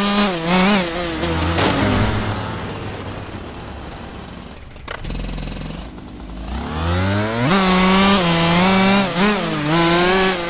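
A motorbike engine revs loudly, fades to a low idle, then roars up again.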